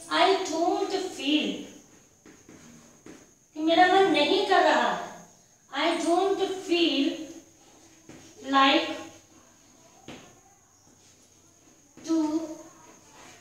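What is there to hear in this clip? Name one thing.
A woman speaks calmly and clearly, close by, as if teaching.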